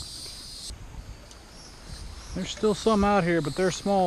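Small waves lap gently at a sandy shore.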